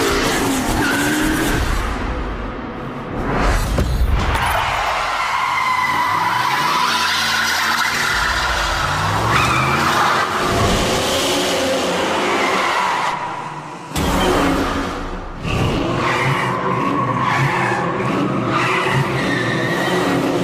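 A car engine roars and revs loudly.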